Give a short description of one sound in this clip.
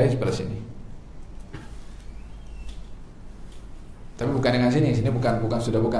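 A man speaks calmly into a clip-on microphone.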